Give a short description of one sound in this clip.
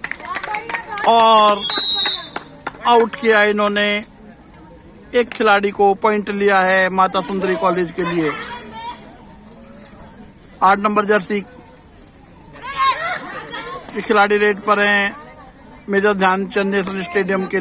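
A young woman chants rapidly and loudly in repeated bursts outdoors.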